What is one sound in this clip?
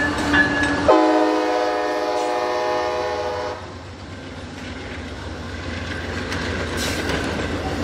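A passing train rumbles and clatters on the rails close by.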